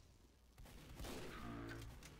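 A rifle fires with a sharp crack.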